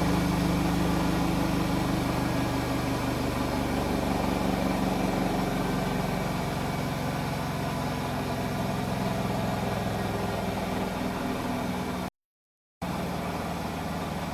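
Washing machines hum and rumble steadily.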